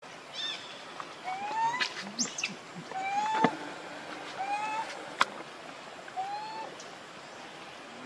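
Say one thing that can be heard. A baby monkey squeaks in short high calls.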